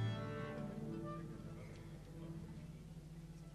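An orchestra's final chord rings out and fades in a large echoing hall.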